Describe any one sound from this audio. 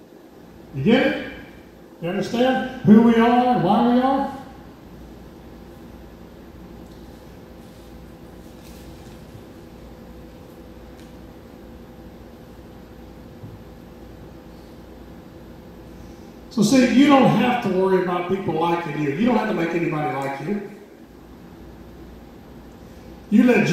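A middle-aged man speaks calmly into a microphone, heard through a loudspeaker with pauses between phrases.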